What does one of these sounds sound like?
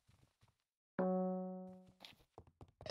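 A short chime rings out.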